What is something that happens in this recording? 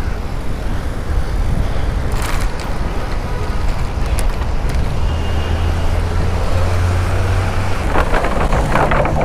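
Wind rushes and buffets loudly against a moving bicycle rider's microphone.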